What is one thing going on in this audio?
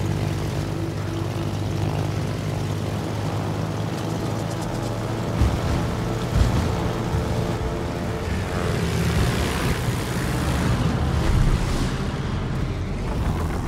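Propeller plane engines drone steadily.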